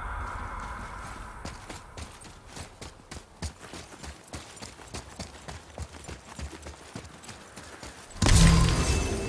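Footsteps run quickly over rocky ground.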